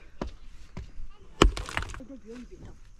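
A pickaxe strikes into rocky ground.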